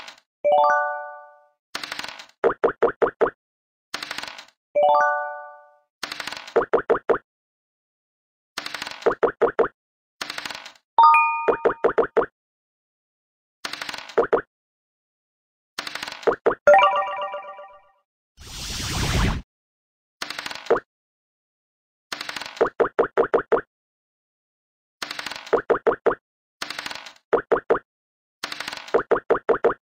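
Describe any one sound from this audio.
Game pieces tap as they hop across the board.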